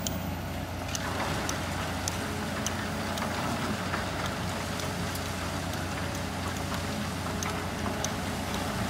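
Rocks and earth clatter into a truck bed.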